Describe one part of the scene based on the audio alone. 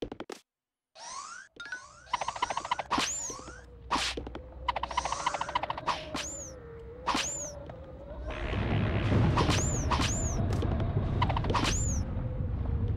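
Cartoonish game sound effects chirp and whoosh.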